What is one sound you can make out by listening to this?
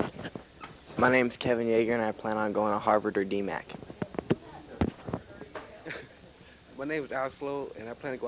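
A young person sings loudly into a microphone.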